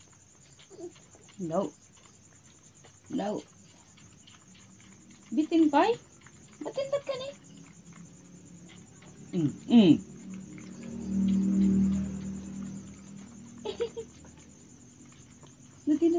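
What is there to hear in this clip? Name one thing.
A puppy whines in short, high cries.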